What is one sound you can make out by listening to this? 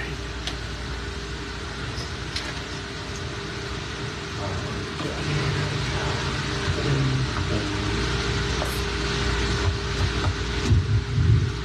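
A man strums an acoustic guitar in a large room.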